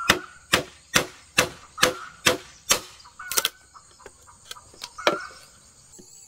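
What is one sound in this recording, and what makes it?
A hammer knocks sharply on bamboo in quick, steady blows.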